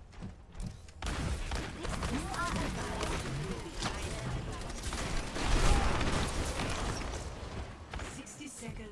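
Gunfire crackles rapidly from a game weapon.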